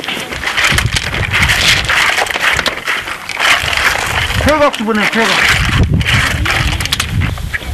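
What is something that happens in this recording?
Clam shells clatter and knock together as they are sorted by hand.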